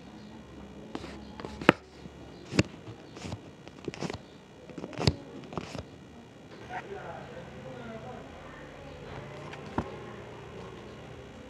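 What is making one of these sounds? Paper crinkles and rustles as hands fold and handle it.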